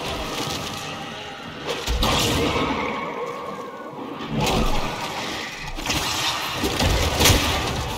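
Blades swish and slash in combat.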